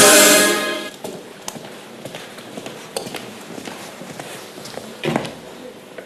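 Footsteps echo along a hard corridor.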